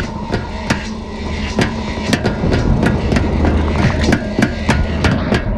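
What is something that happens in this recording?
Heavy footsteps clang quickly on a metal walkway.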